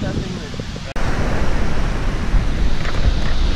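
Waves break and wash onto a shore.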